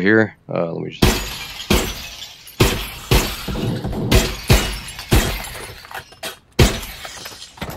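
Rifle shots crack in rapid succession.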